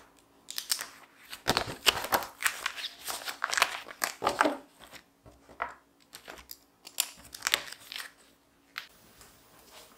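Notebooks are set down on a wooden table with soft thuds.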